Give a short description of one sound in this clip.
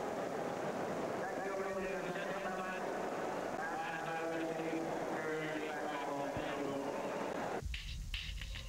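A large crowd sings and chants in unison outdoors.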